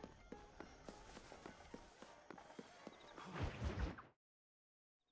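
Footsteps run quickly on a hard street.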